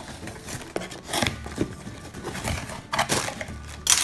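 Cardboard box flaps are pulled open.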